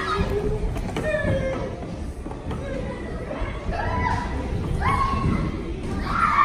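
A small wheeled cart rolls across a floor.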